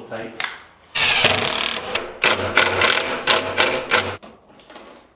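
A cordless drill whirs, driving screws into wood.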